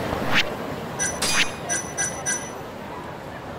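Short electronic menu blips chime in quick succession.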